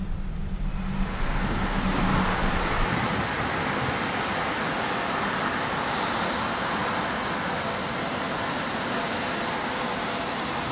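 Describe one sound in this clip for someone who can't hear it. A train rolls into a station and slows to a stop.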